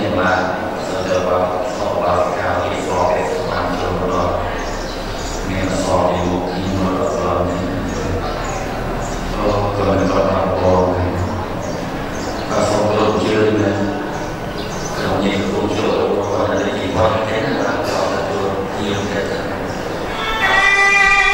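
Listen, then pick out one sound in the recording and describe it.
An elderly man chants into a microphone, heard over a loudspeaker in an echoing hall.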